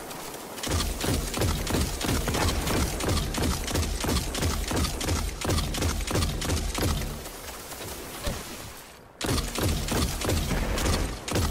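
A rapid-fire gun shoots in quick bursts of loud shots.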